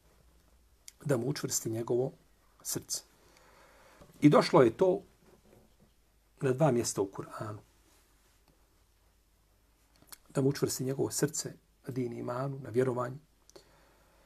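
A middle-aged man speaks calmly and clearly into a close microphone, in short phrases with pauses.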